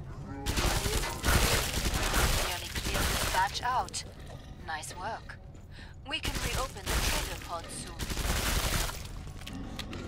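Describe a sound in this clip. Automatic gunfire rattles in loud bursts.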